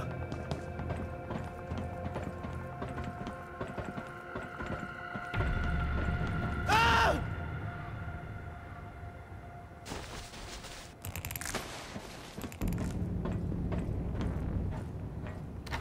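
Footsteps clang on metal stairs and grating.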